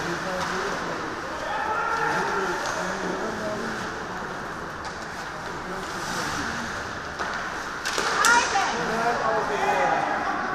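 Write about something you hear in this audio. A stick strikes the puck with a sharp crack.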